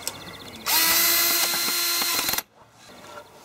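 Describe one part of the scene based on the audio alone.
A cordless drill whirs.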